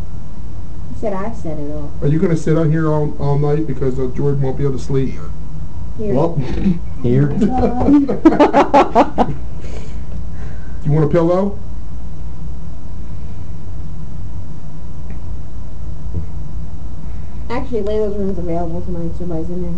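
A young man talks in a low voice close by, in short bursts.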